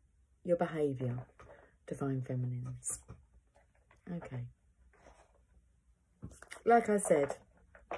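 A woman speaks calmly and close up, in short phrases with pauses.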